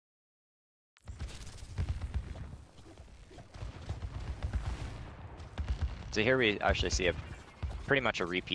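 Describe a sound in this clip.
Gunshots and blasts crackle in a fast, busy battle.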